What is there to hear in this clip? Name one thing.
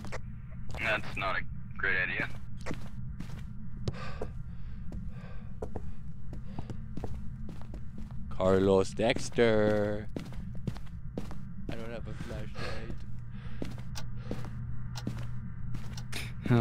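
Footsteps thud at a steady walking pace indoors.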